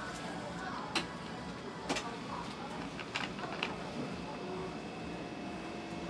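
Tongs click as a biscuit is placed on top of a dessert cup.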